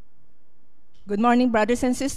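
A woman speaks into a microphone, close and amplified.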